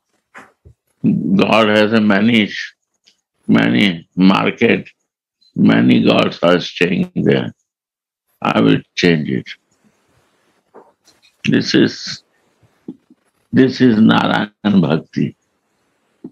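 An elderly man speaks slowly and calmly, heard through an online call, with long pauses.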